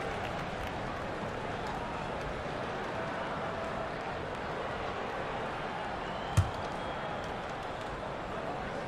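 A large arena crowd murmurs steadily in the background.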